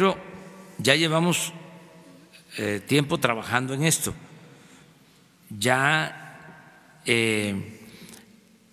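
An elderly man speaks slowly and firmly into a microphone, in bursts with pauses.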